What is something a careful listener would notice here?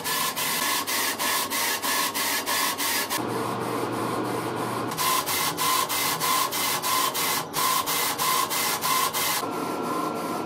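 A laser engraver pulses rapidly as it works.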